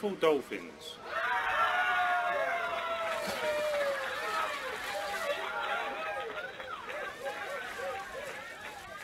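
Dolphins squeak and whistle.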